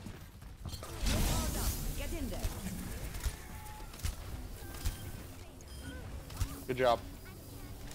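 A rifle fires sharp shots in quick bursts.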